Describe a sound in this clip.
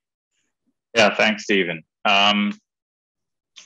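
A younger man speaks briefly over an online call.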